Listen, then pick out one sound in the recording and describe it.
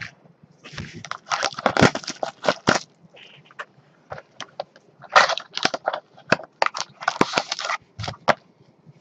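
A foil wrapper crinkles and rustles as it is torn open.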